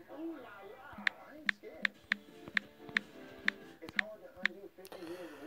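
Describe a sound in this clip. A phone keyboard clicks with quick, sharp taps.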